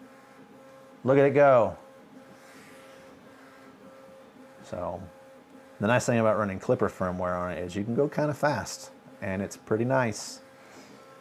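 A printer's motors whine in short bursts of rising and falling pitch as its print head moves.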